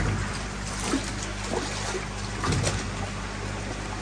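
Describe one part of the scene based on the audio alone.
Water splashes as a net is dragged through it.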